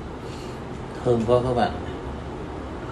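A man sips a drink loudly.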